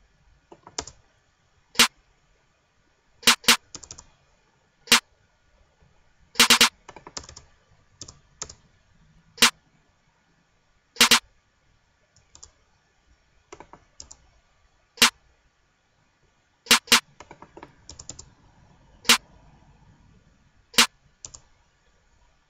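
Sharp drum hits play in an uneven electronic beat.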